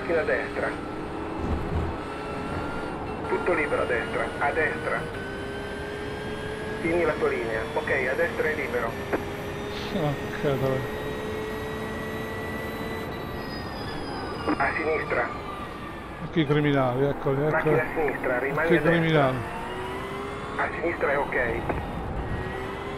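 A man talks with animation into a close microphone, in short bursts.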